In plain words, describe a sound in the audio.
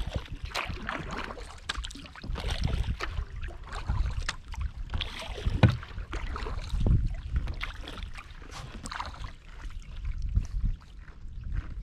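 Wind rumbles across the open water.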